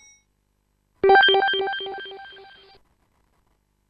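A computer game plays a repeating electronic chime that fades away.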